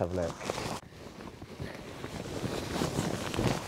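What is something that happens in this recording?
A fabric bag rustles in hands.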